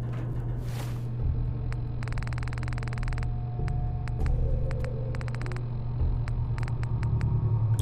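Soft electronic clicks tick as a menu is scrolled.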